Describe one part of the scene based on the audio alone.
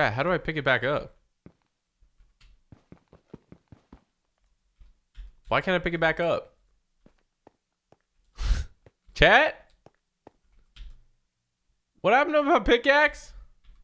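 A young man talks with animation close to a microphone, in short bursts.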